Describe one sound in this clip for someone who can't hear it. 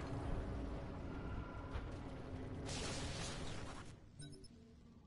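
Loud rumbling blasts and crackling noise fill the air.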